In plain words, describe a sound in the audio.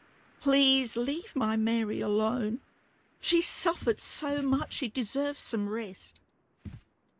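An elderly woman pleads in an upset voice.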